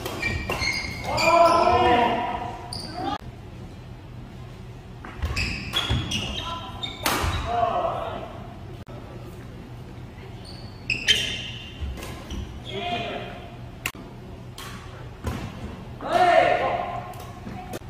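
Young men call out and shout in an echoing hall.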